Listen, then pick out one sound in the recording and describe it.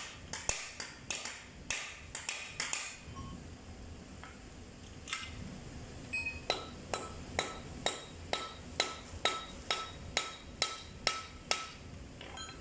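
A hammer strikes metal in quick, ringing blows.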